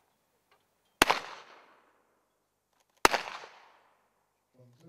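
Two shotgun blasts ring out outdoors, each echoing off into the distance.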